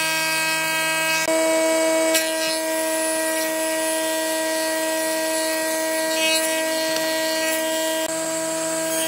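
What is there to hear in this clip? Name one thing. A wood planer whines steadily as it shaves a board.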